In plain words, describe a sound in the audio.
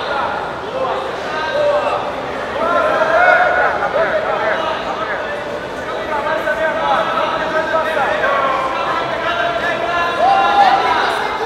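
A crowd of spectators shouts and calls out.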